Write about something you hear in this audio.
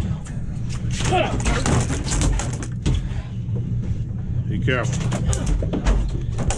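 A large fish thrashes and slaps against a boat deck.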